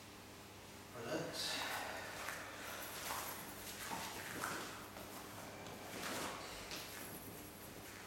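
A man talks calmly in an echoing room.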